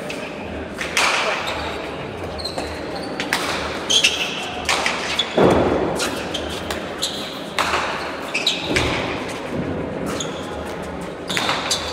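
A player strikes a ball with a sharp crack.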